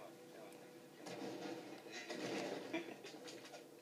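An explosion rumbles from a television speaker.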